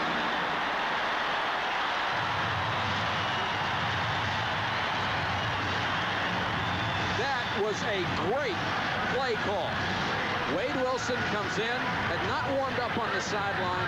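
A large crowd cheers and roars steadily in a big stadium.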